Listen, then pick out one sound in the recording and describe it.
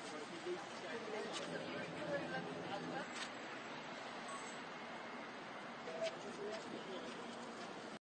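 A crowd of people murmurs and talks outdoors.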